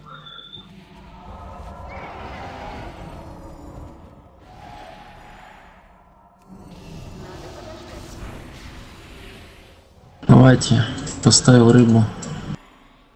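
Magic spells crackle and weapons clash in a battle.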